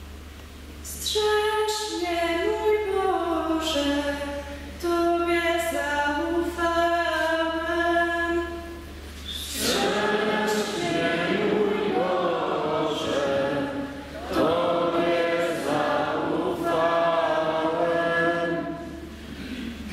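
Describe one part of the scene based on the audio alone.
A young woman reads aloud through a microphone in a large echoing hall.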